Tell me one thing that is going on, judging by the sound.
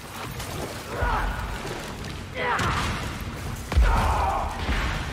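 A creature lets out loud shrieks.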